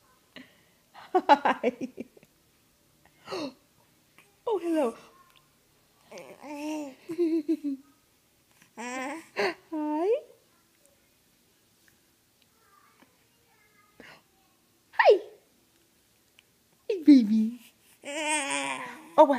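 A baby giggles and coos close by in short bursts.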